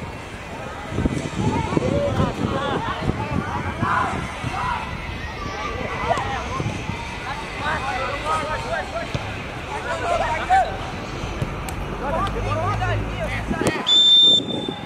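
Young players shout to each other outdoors.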